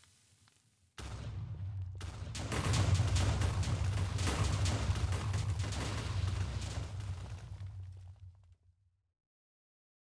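Explosions boom and rumble heavily, then slowly die away.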